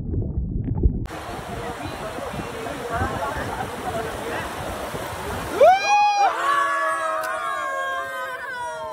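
Water rushes over rocks in a river.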